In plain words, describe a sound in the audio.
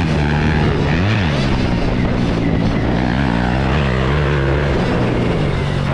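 Another dirt bike engine buzzes nearby.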